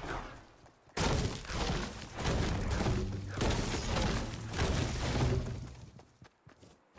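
A pickaxe chops rapidly into a tree trunk.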